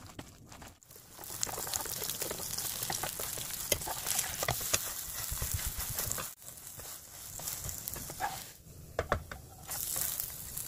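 Batter sizzles in a hot frying pan.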